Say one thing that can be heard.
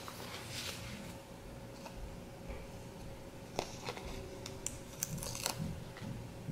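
Sticker paper rustles and crinkles softly as it is handled and peeled.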